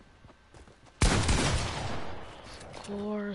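A gun fires a loud burst of shots.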